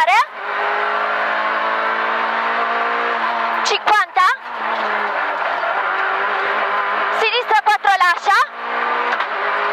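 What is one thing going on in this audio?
A rally car engine roars loudly from inside the car.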